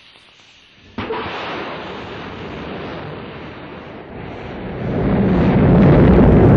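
A rocket engine ignites and roars with a deep rumble, growing louder.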